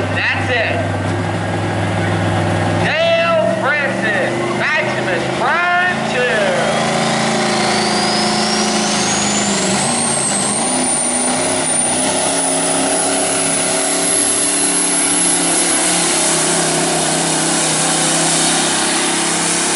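A big diesel truck engine roars loudly at full throttle.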